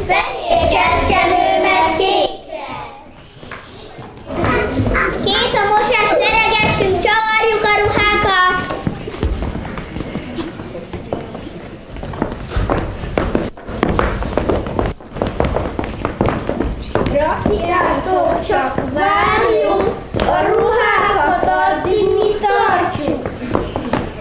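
Young children sing together in an echoing hall.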